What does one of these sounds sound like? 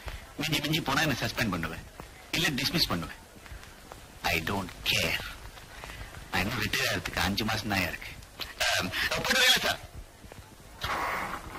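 A man speaks sternly, close by.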